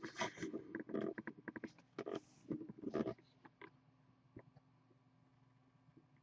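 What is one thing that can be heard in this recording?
Cardboard boxes are handled and bump against each other.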